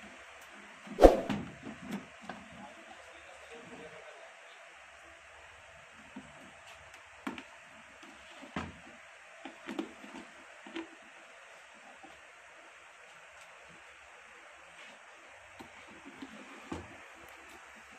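Metal plates clink and knock as they are handled.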